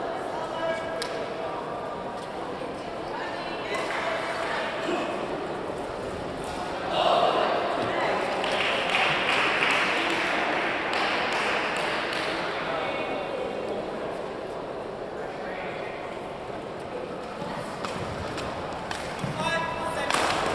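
Rackets sharply hit a shuttlecock.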